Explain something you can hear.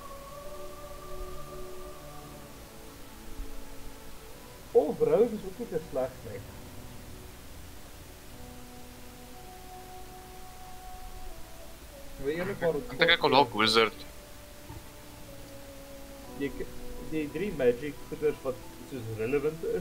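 Soft, calm music plays with long held tones.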